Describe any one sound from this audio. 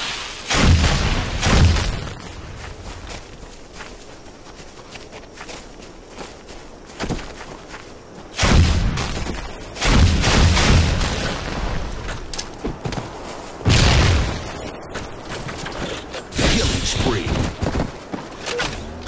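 Gunfire from a video game rattles in loud, sudden bursts.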